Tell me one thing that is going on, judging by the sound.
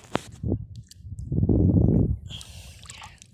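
Shallow water sloshes and splashes as a hand reaches into it.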